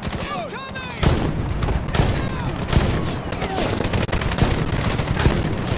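A shotgun fires loud single blasts.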